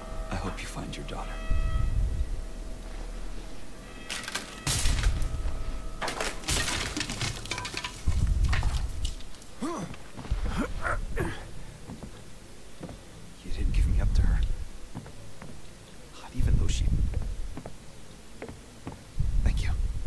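A young man talks quietly into a close microphone.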